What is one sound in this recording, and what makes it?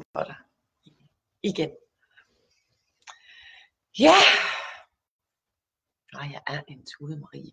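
A young woman speaks warmly and with animation into a close microphone, with pauses.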